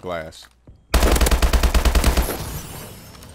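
A rifle fires a rapid burst at close range.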